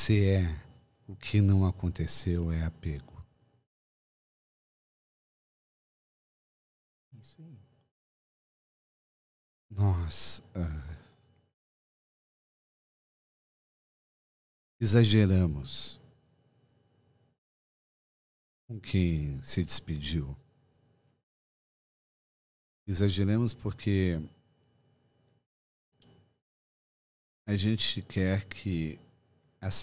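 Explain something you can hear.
A middle-aged man speaks calmly into a close microphone, in bursts with pauses.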